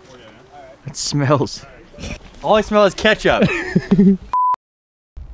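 A man talks with animation, close by, outdoors.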